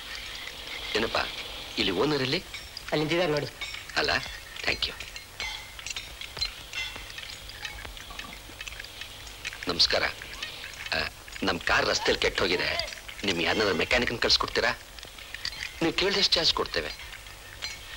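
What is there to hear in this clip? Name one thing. An adult man talks with another man close by.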